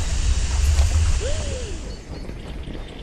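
An explosion roars with a deep rumble that dies away.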